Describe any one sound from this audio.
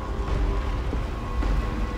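Flames crackle.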